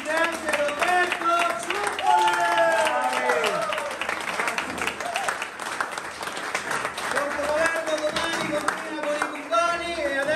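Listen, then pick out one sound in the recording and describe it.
A man sings loudly through a microphone in an echoing hall.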